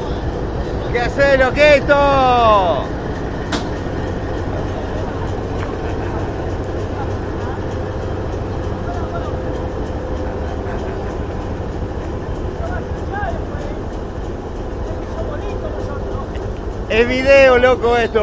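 Train wheels squeal shrilly on the rails.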